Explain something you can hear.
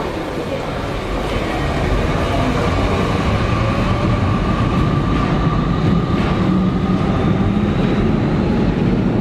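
City traffic rumbles nearby.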